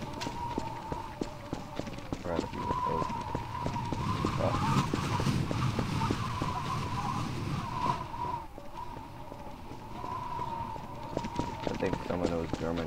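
Footsteps tap steadily on a hard road.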